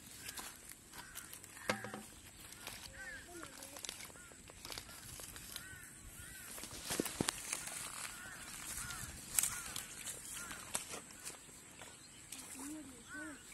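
Hands dig and squelch in wet mud.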